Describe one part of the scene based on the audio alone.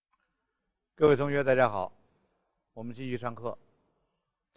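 A middle-aged man speaks calmly into a headset microphone.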